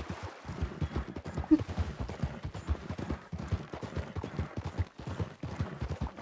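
A horse's hooves clop steadily on loose stones.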